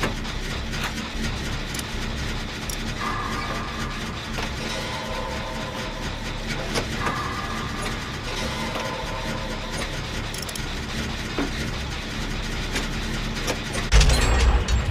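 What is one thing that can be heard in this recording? A generator engine rattles and clanks steadily.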